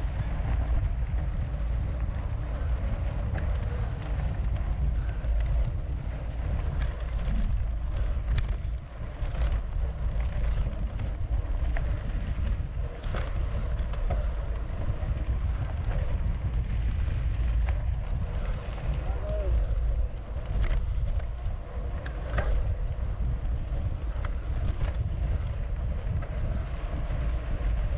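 Wind rumbles loudly across a microphone outdoors.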